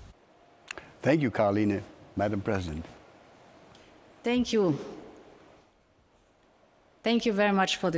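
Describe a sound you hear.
A woman speaks warmly through a microphone, with short pauses.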